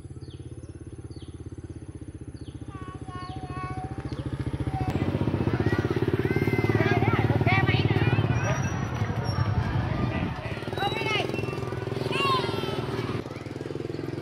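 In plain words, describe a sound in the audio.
A motor scooter engine putters steadily nearby.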